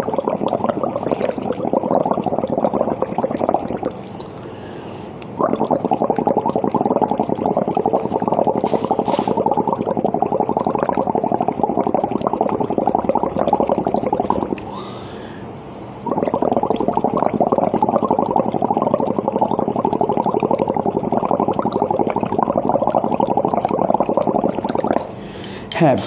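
A man blows through a straw into a bottle, making a rough, bubbling buzz that stops twice for breath.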